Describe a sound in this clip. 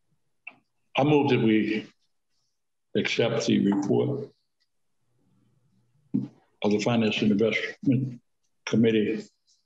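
A second man speaks in short phrases over an online call.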